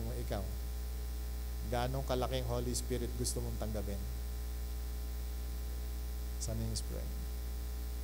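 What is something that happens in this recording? A middle-aged man speaks with animation into a microphone, in short bursts.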